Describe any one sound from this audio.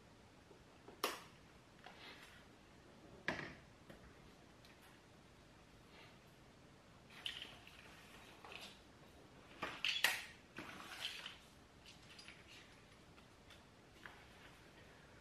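Plugs and cables click and knock as they are handled.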